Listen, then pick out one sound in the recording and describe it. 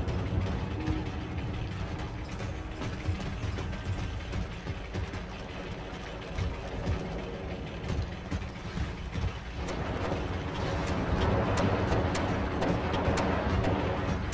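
Heavy metallic footsteps thud on a hard floor.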